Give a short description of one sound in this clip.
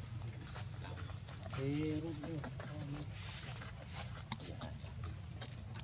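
Monkeys scuffle on sandy ground.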